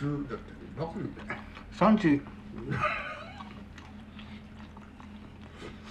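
An elderly man slurps noodles.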